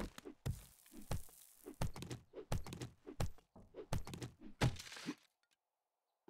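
Heavy blows thump and crack against a wooden crate.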